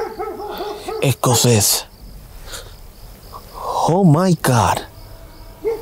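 A young man talks quietly and tensely, close by.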